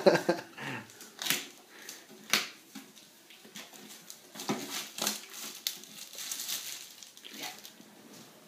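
A metal tin knocks and scrapes lightly against a soft surface.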